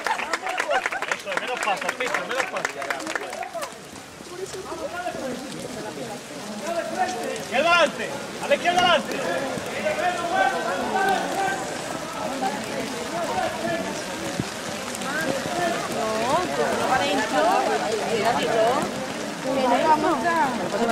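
A crowd of men and women talks and calls out close by, outdoors.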